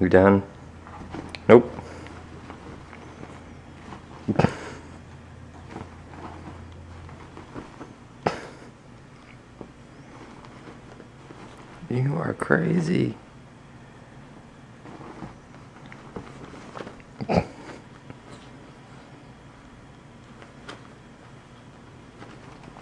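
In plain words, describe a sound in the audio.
A kitten scrambles and pounces in rustling bed sheets.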